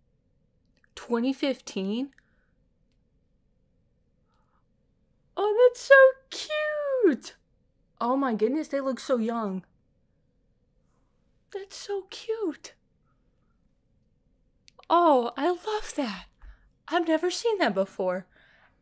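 A young woman talks close to the microphone in short, animated bursts.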